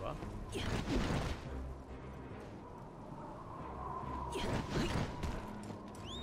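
A sword swishes quickly through the air.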